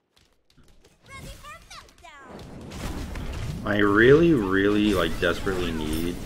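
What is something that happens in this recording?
Magic spells whoosh and crackle in a video game.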